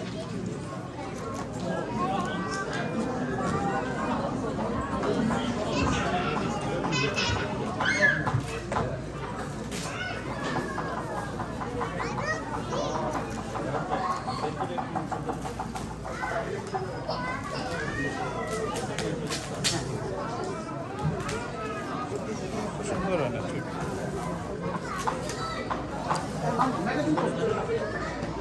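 Several men and women chatter in a large echoing hall.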